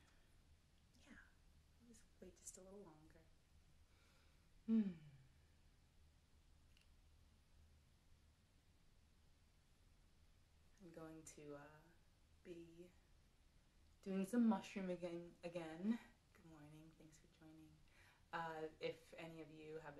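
A young woman speaks calmly and warmly close by, with pauses.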